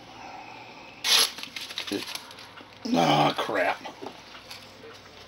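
Plastic crinkles and rustles close by.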